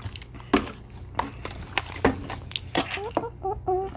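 A paper packet crinkles as a boy tears it.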